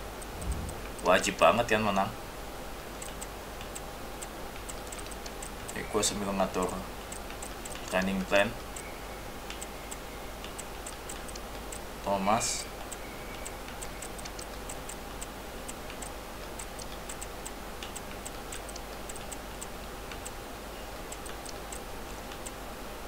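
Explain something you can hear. Soft electronic menu clicks tick repeatedly.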